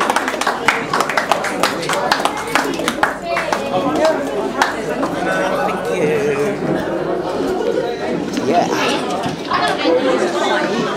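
A crowd of men and women talk and call out loudly close by, echoing in a busy room.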